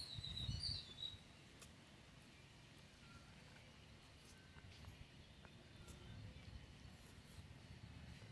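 Fingers squelch through soft rice.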